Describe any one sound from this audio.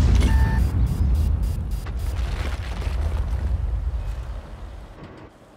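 A heavy tank engine rumbles low and steadily.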